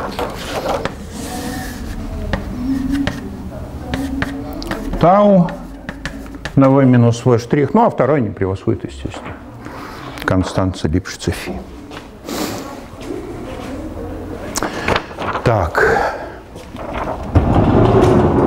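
An elderly man speaks calmly in a room with some echo.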